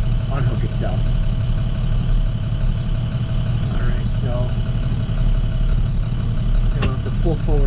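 A truck engine rumbles steadily close by.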